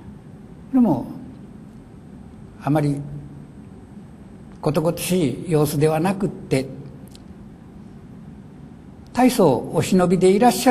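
An elderly man reads aloud slowly into a microphone, with pauses.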